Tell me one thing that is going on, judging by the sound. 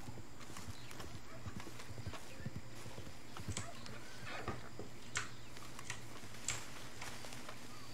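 Hooves thud slowly on soft ground.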